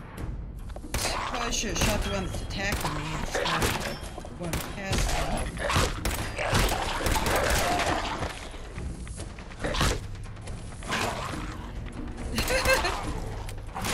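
A woman talks with animation into a headset microphone.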